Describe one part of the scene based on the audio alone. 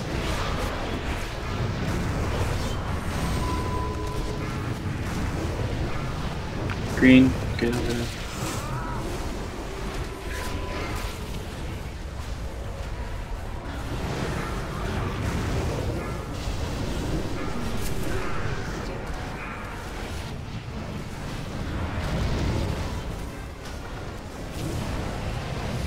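Magic spells whoosh and crackle in a busy fantasy battle.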